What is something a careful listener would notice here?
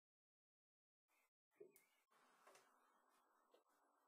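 A metal can is set down on a table with a light knock.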